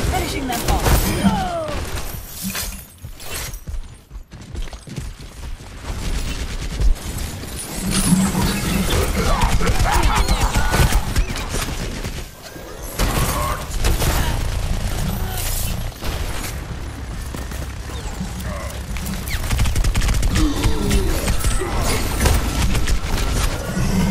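A heavy gun fires loud, booming shots again and again.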